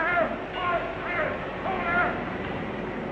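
Several men shout with alarm.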